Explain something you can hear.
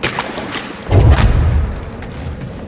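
A body lands on the ground with a heavy thud.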